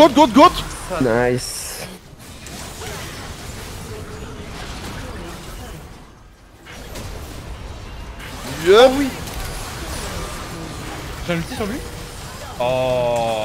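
Magical blasts and whooshes burst in quick succession.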